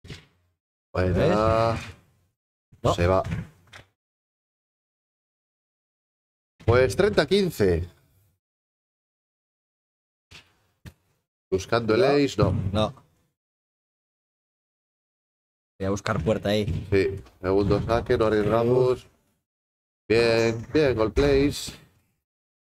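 Men talk between points.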